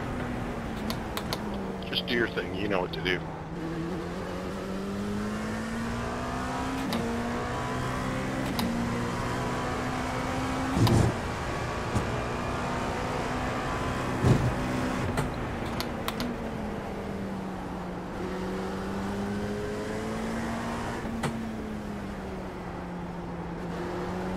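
A race car engine drones and revs up and down through gear changes.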